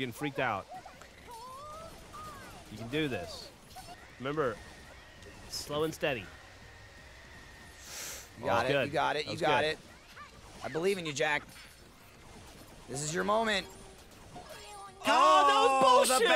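Young men talk and exclaim with animation close to a microphone.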